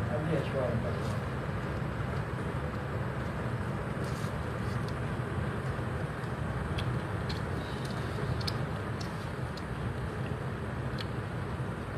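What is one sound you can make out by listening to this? Small flames crackle and hiss beneath a parked car.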